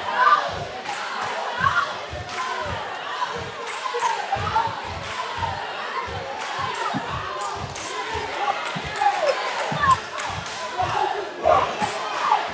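A basketball bounces repeatedly on a wooden floor.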